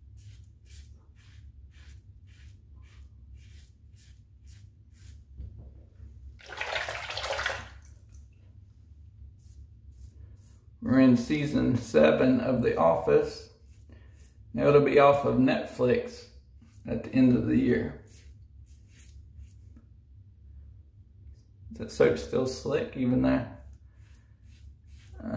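A razor scrapes across stubble in short strokes.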